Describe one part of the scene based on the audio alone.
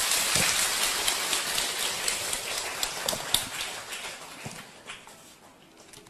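A crowd applauds loudly, then the clapping fades away.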